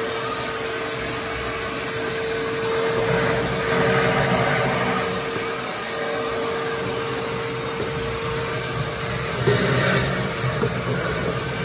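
A vacuum hose sucks up ash and grit with a rattling hiss.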